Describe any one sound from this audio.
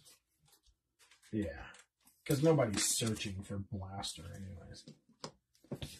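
Plastic card cases click and rattle as they are handled.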